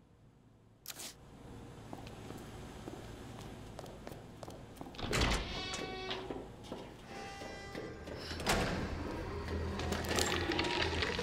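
Footsteps walk on a hard floor and then a metal walkway.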